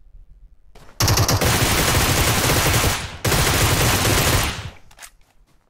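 Gunfire rattles in rapid bursts from a video game.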